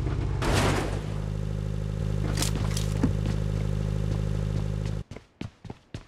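A vehicle engine rumbles steadily, then cuts off.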